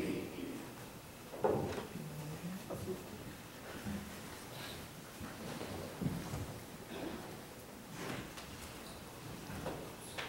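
A woman speaks calmly into a microphone in an echoing room.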